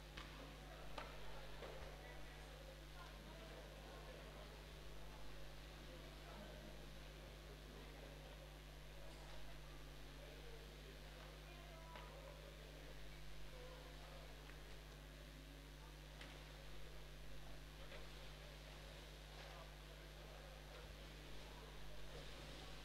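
A crowd murmurs faintly in a large echoing hall.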